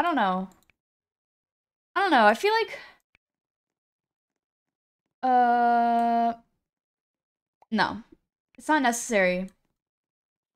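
A young woman speaks in an animated, sing-song way close to a microphone.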